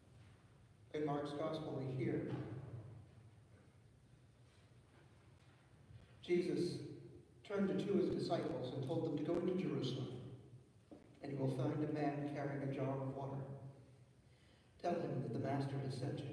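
A woman reads aloud over a loudspeaker in a large echoing hall.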